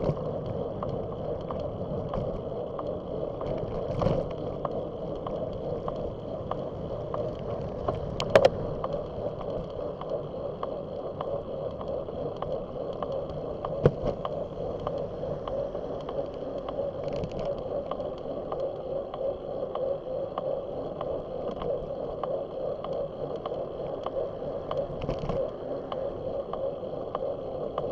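Bicycle tyres hum steadily on pavement.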